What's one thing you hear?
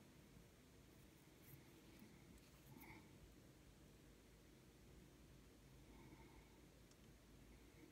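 Small glass beads click softly against each other.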